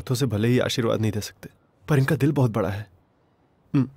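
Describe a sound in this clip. A man speaks with feeling, close by.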